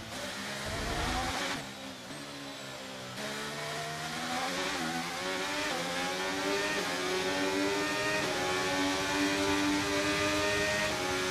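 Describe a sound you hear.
A racing car engine screams, dropping in pitch as it brakes and then rising as it accelerates through the gears.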